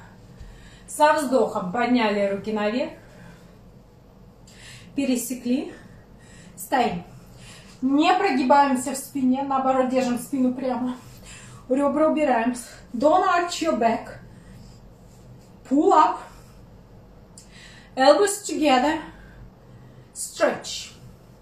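A young woman speaks calmly and clearly close by, in short phrases.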